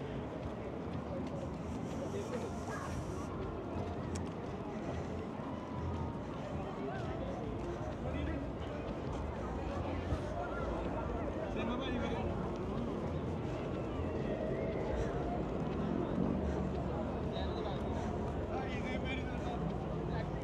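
Wind blows across an open outdoor space.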